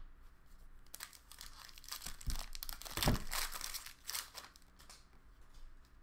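Foil card wrappers crinkle and tear.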